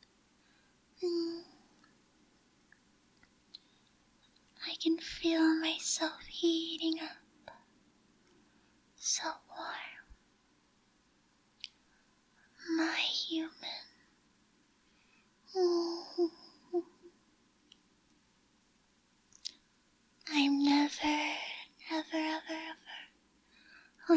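A young woman speaks softly and playfully, close to the microphone, with pauses between phrases.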